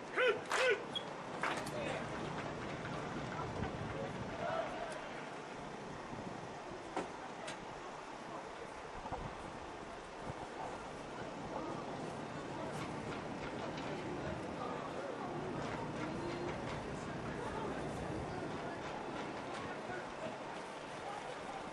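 Young men shout and call out from close by.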